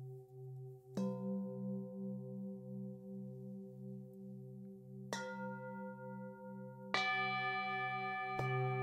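A singing bowl is struck with a mallet and rings out.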